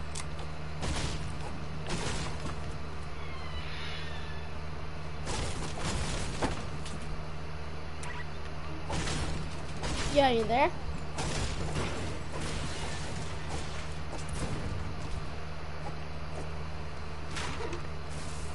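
A pickaxe swings and strikes with sharp thwacks.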